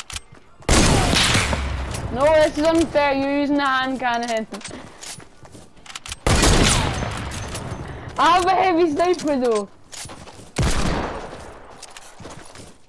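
Loud gunshots boom and echo away.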